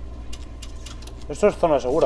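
A metal switch clicks.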